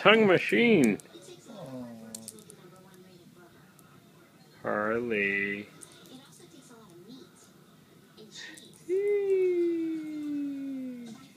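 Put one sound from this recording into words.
A small dog yelps and howls up close.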